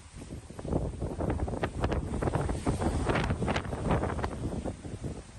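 Wind buffets loudly outdoors in gusts.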